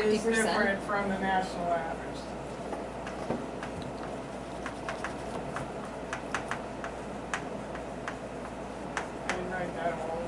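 Chalk taps and scrapes on a chalkboard.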